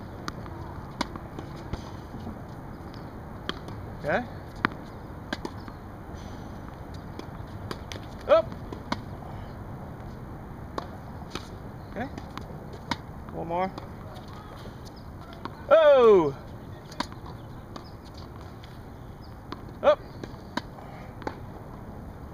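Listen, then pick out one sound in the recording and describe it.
A tennis racket strikes a ball with sharp pops, now and then.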